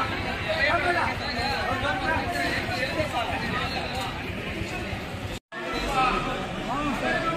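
A crowd of men and women chatter loudly nearby.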